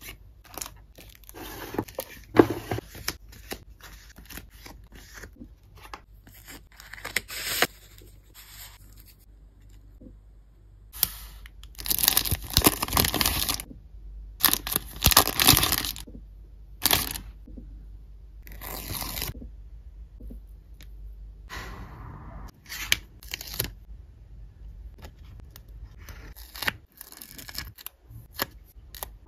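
Paper sheets rustle and slide against each other close by.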